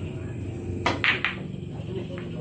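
Billiard balls click sharply together.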